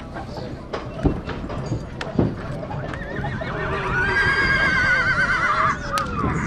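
A horse's hooves thud on the grass.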